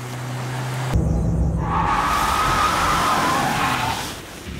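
A car engine revs up.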